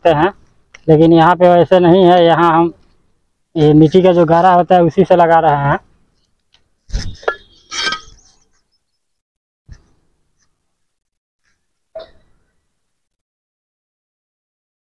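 A trowel scrapes and taps on wet mortar.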